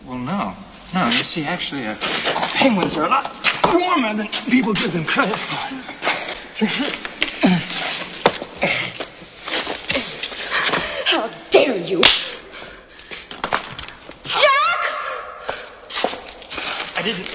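A woman speaks in distress up close.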